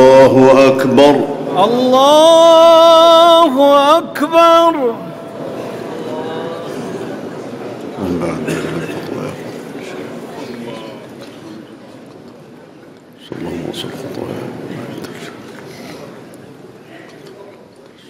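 A man chants a long, drawn-out melodic call through a loudspeaker, echoing in a large hall.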